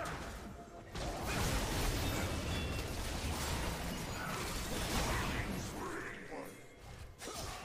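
Video game combat effects crash and whoosh in quick bursts.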